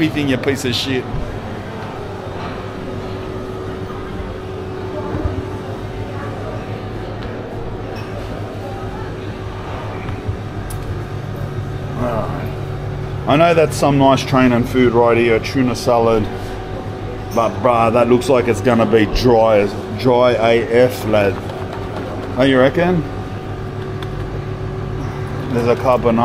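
Refrigerated display cases hum steadily.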